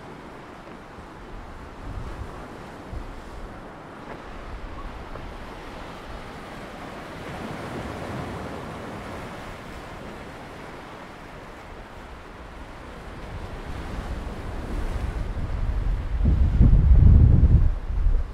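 Waves splash and crash against rocks nearby.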